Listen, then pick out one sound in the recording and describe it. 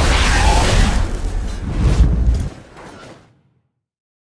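Fire roars loudly in a burst of flame.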